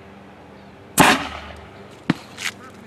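A small cannon fires with a single sharp bang outdoors.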